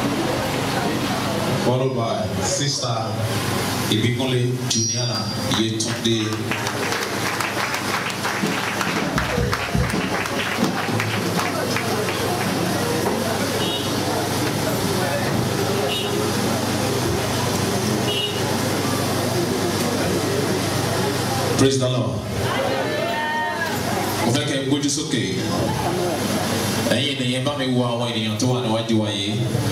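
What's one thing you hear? A crowd of men and women sings together in a loud, echoing room.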